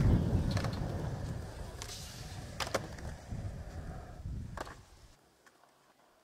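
Skateboard wheels rumble over concrete.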